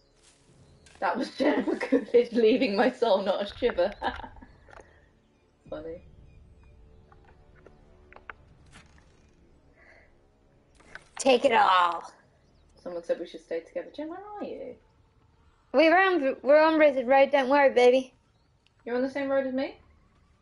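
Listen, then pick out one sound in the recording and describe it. Young women talk with animation, close to a microphone.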